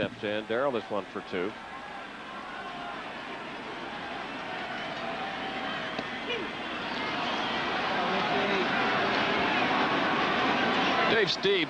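A large crowd murmurs and cheers in a stadium, growing louder.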